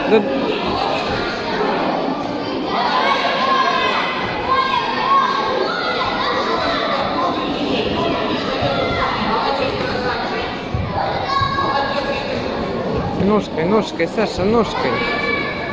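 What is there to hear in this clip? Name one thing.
A crowd of children and adults chatters and calls out in a large echoing hall.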